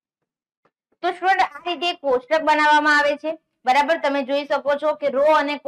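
A young woman speaks clearly and with animation, close to a microphone.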